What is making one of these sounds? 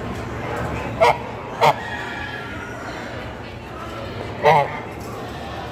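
A goose honks loudly close by a few times.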